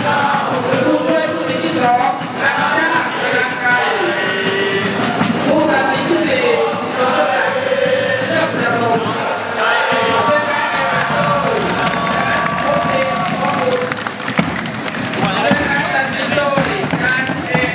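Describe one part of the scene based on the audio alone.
A crowd of fans chants and sings from a distance.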